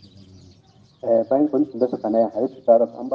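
A man chants loudly in a melodic voice close by.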